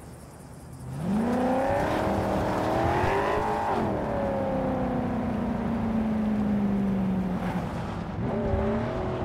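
A car engine revs up and then runs steadily.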